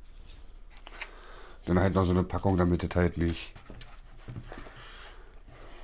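Hard plastic parts click and rustle as they are handled.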